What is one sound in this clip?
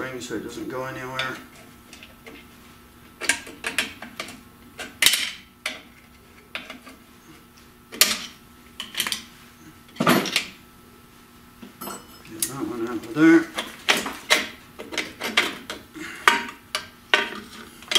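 Pliers clink against metal brake springs.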